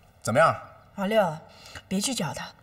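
A man answers in a low, tired voice.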